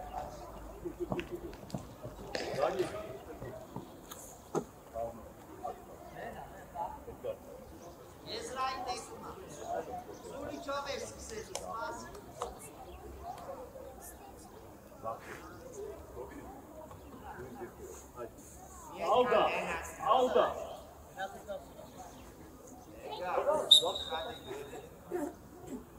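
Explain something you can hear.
Children shout and call out across an open field.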